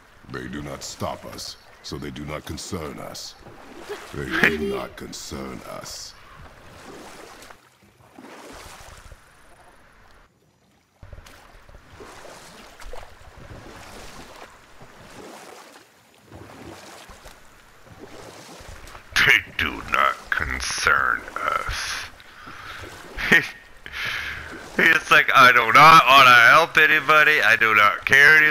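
Oars splash softly in water as a boat glides along.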